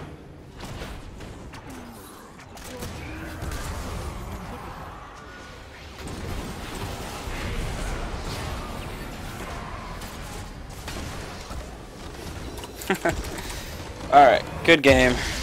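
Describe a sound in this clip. Game spells and weapon hits crackle and whoosh during a fight.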